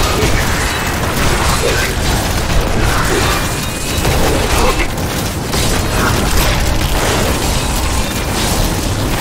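Electric spells crackle and zap in a game battle.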